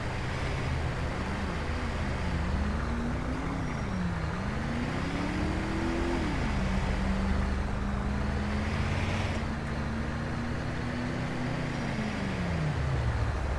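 A vehicle engine revs up and down.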